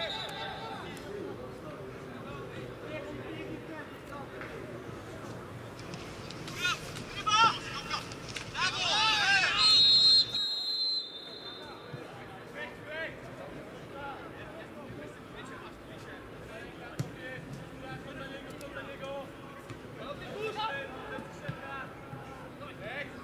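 Spectators murmur and call out in a stadium, heard from a distance.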